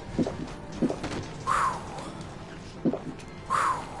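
A man gulps down a drink from a bottle.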